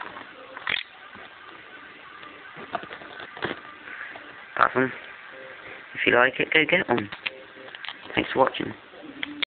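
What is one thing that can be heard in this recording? Hard plastic parts click and rattle as a toy figure is handled.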